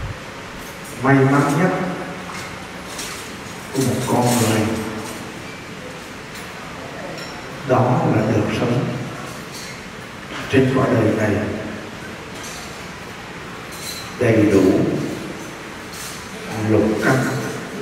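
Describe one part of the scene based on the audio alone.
A man chants in slow, drawn-out phrases through a microphone and loudspeaker, with pauses between them.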